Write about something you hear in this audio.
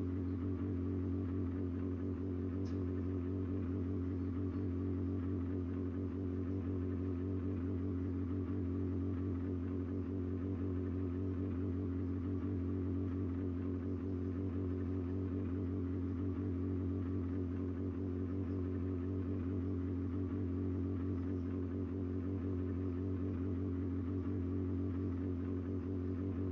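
A race car engine idles with a steady low rumble.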